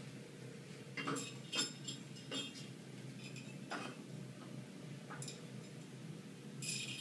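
A metal stepladder rattles and clanks under a man's feet.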